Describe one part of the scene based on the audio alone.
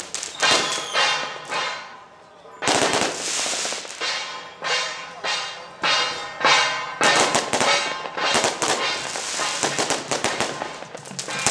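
Hand cymbals crash loudly in a rhythmic marching beat outdoors.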